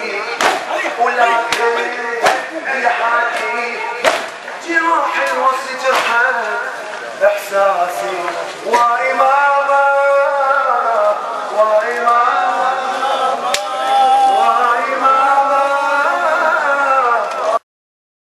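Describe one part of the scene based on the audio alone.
A man chants loudly into a microphone through a loudspeaker.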